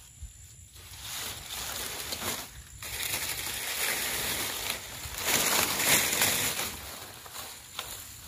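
Dry leaves rustle as they are pushed into a fire.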